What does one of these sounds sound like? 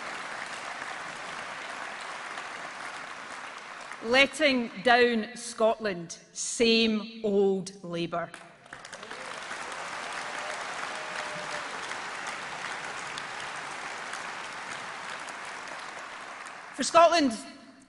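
A crowd applauds steadily in a large hall.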